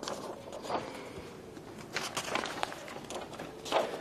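Papers rustle as a man handles them.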